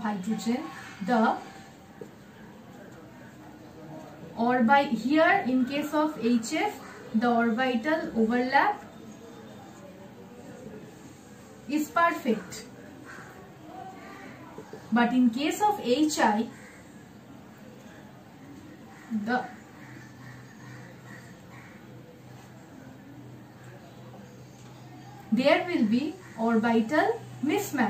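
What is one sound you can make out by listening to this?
A young woman explains calmly in short bursts, close by.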